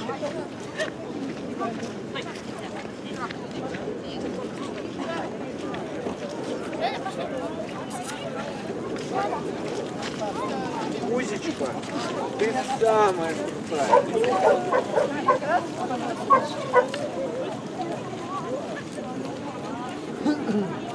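Women chat outdoors among a small crowd.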